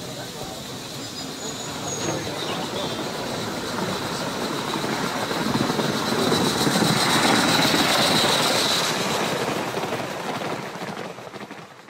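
A model train rumbles closer along the track and passes by.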